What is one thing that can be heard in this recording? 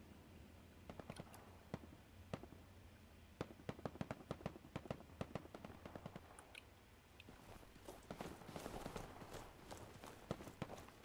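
Gunshots crack repeatedly in the distance.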